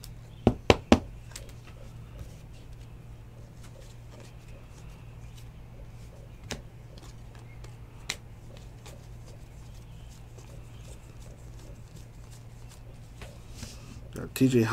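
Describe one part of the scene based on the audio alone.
Stiff trading cards rustle and click as hands sort through them.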